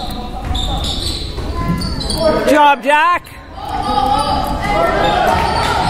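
Sneakers squeak on a hard court in an echoing gym.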